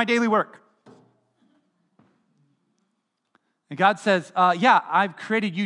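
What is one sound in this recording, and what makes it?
A middle-aged man speaks with animation through a microphone, his voice ringing in a reverberant hall.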